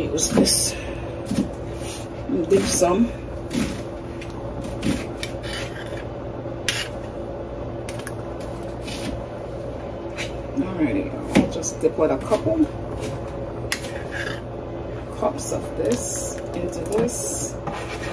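A ladle scoops thick liquid from a pot.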